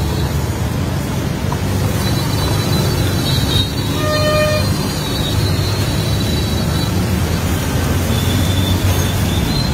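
A hand slicer scrapes rhythmically as potatoes are sliced into the oil.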